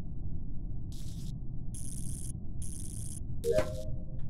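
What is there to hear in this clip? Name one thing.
Short electric crackles sound as wires are connected.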